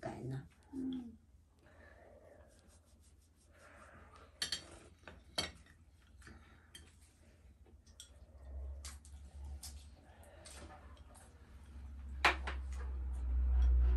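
Chopsticks and bowls clink softly.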